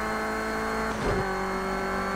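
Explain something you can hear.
A car engine shifts gear with a brief jolt in pitch.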